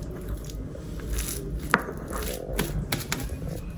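A lump of soft paste is patted down with a soft thud.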